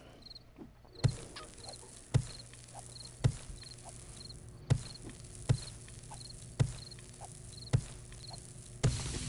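A pickaxe strikes rock with heavy, regular thuds.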